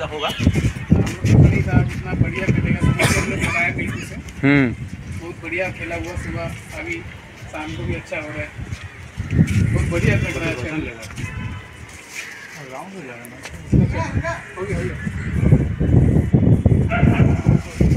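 Several men talk with animation nearby, outdoors.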